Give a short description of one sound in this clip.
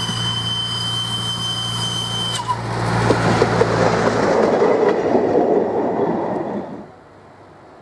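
A diesel locomotive engine rumbles loudly close by as it rolls past.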